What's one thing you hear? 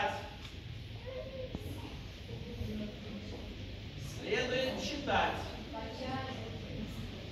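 An elderly woman speaks calmly, as if lecturing.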